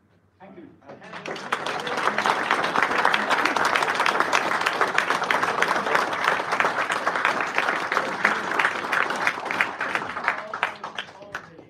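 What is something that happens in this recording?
An audience claps and applauds warmly in a room.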